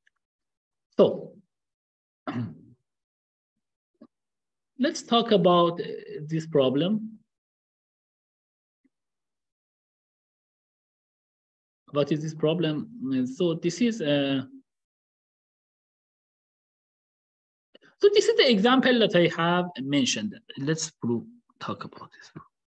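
A young man speaks calmly and close through a microphone, in bursts with pauses.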